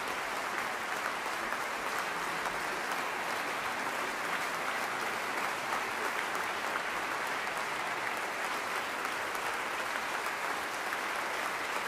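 A large crowd applauds steadily in a big echoing hall.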